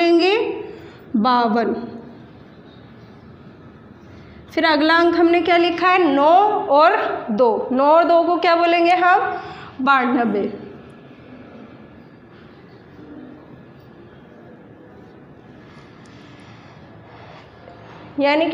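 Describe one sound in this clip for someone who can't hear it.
A young woman speaks clearly and with animation, close by.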